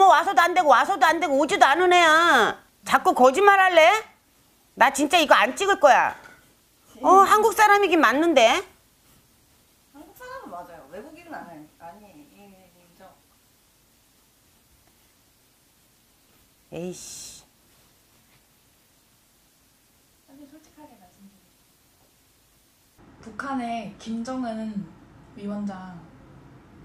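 A middle-aged woman speaks with animation close to a microphone.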